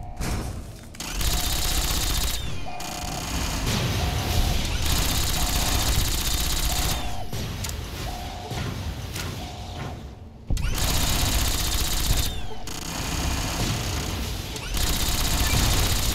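A laser rifle fires in rapid crackling bursts.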